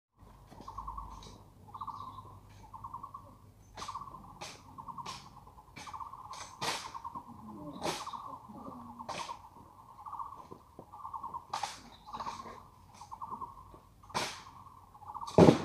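Rifles are slapped and clicked sharply during a drill, in crisp repeated knocks.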